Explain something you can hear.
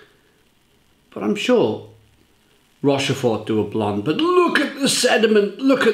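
Beer pours and fizzes into a glass.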